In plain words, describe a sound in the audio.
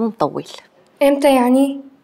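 A young girl speaks softly nearby.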